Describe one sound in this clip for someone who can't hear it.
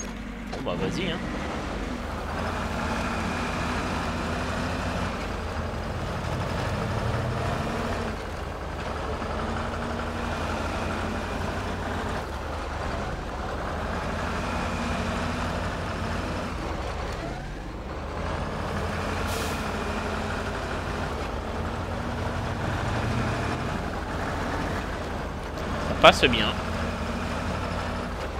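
A vehicle engine revs and labours steadily as it crawls over rough ground.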